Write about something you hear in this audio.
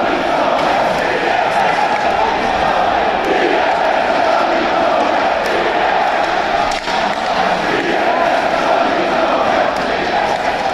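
A large crowd sings and chants loudly together in a big echoing arena.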